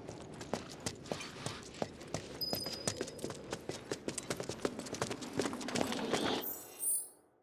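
Footsteps clatter quickly on a hard floor.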